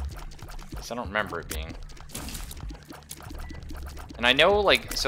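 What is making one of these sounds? Small shots pop and splat in quick succession in a video game.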